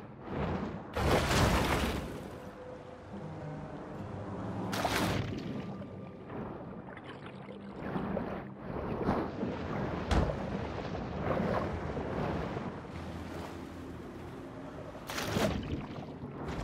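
Water splashes as a shark breaks the surface.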